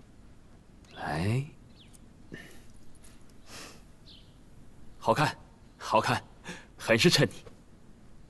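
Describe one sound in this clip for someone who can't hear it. A man speaks warmly and close by.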